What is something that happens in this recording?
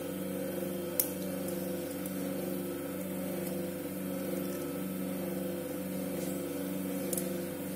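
Metal surgical instruments clink briefly.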